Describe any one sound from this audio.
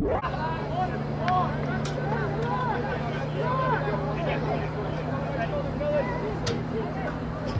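Young men shout to each other at a distance outdoors.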